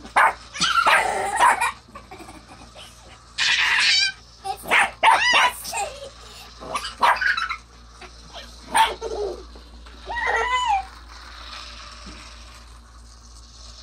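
A toy car whirs along a plastic track.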